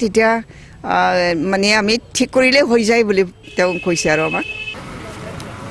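An elderly woman speaks calmly into microphones up close.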